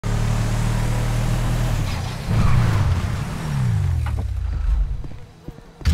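A pickup truck engine rumbles steadily, then winds down as the truck slows to a stop.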